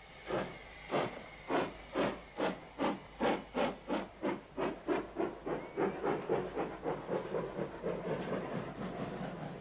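A subway train's wheels clatter rhythmically over rail joints, speeding up.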